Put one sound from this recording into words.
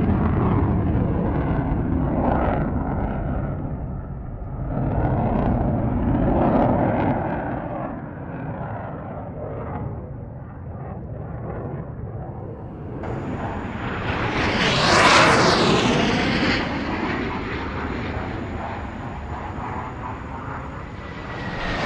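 A jet engine roars loudly overhead, swelling and fading.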